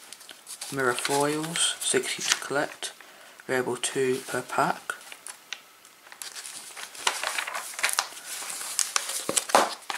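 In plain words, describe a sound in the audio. Stiff album pages rustle and flip over.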